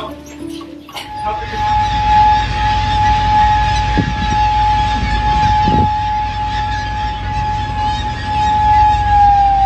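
A ship's engine rumbles low and steady.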